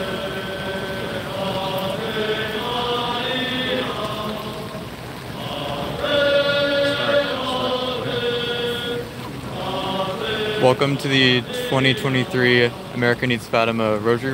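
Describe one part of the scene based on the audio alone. A crowd of men and women prays aloud in unison outdoors, heard from across a street.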